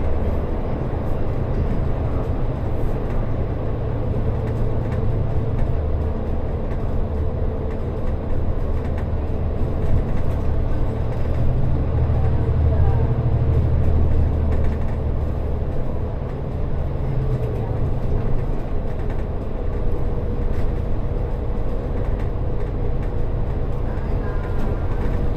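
Traffic roars and hums, echoing off the tunnel walls.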